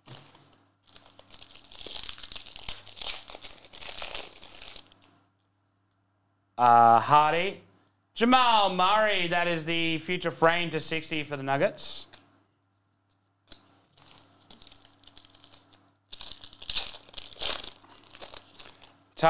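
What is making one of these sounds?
Foil wrappers crinkle and tear open.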